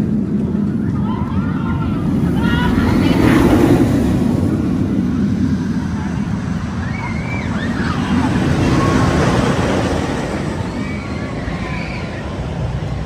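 Riders scream on a passing roller coaster.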